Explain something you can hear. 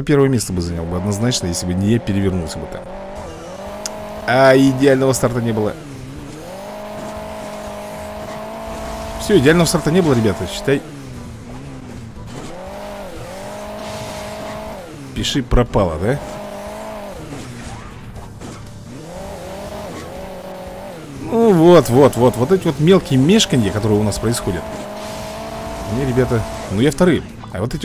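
A car engine drones and revs.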